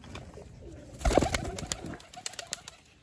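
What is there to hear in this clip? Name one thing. A pigeon flaps its wings as it flies off.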